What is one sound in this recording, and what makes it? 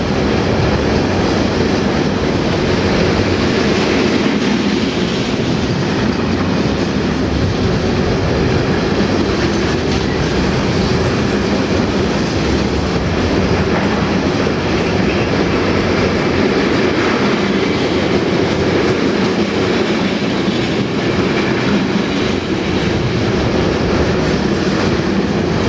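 A freight train rumbles steadily past at close range.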